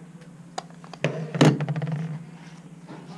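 A book knocks softly onto a wooden surface.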